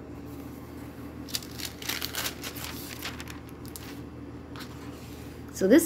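Paper pages rustle as a book's pages are turned.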